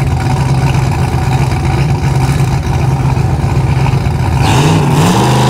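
A car engine rumbles loudly at idle nearby.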